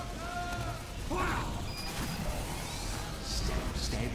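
Flames roar from a flamethrower.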